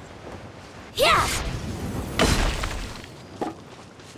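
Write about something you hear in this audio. A heavy impact booms and rings out on landing.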